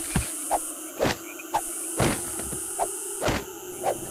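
A pickaxe strikes glass with sharp, repeated knocks.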